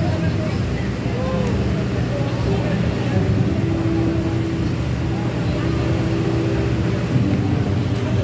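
Music plays loudly through outdoor loudspeakers.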